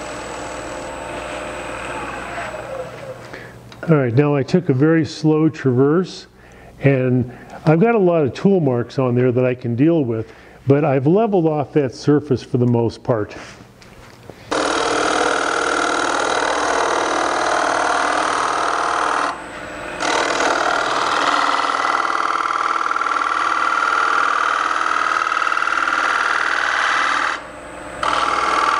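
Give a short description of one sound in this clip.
A wood lathe hums steadily.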